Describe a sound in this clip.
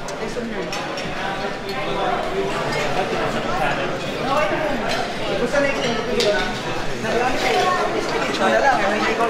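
Many people chatter in a room.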